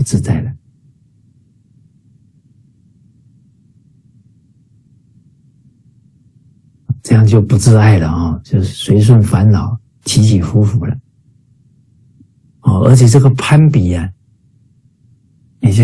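A middle-aged man speaks calmly through an online call, with pauses.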